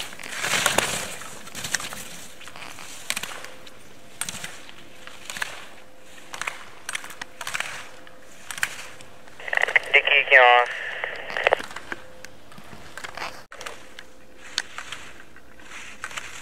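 Skis carve and scrape across hard snow in repeated hissing swishes.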